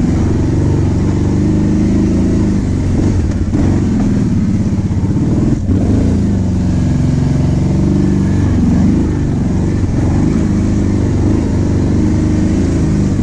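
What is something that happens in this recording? A quad bike engine drones and revs steadily close by.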